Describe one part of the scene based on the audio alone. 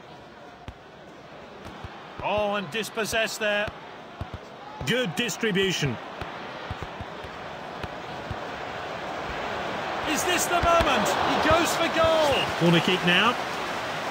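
A stadium crowd murmurs steadily and swells to a roar.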